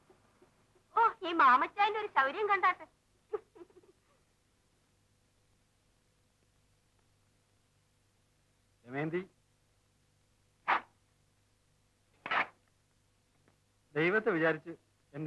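A man speaks in short, calm phrases with long pauses between them.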